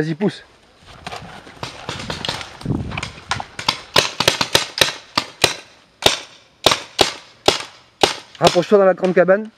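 Paintball guns fire in quick sharp pops outdoors.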